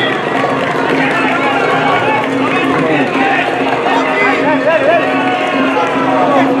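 Several men shout and call out to each other outdoors.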